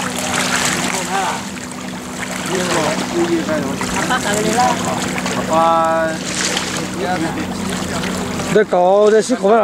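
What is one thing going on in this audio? A boat motor hums steadily.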